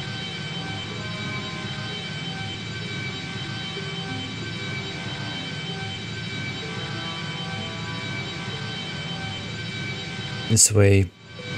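A spacecraft engine hums steadily.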